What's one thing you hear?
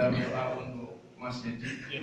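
A man speaks into a microphone over a loudspeaker.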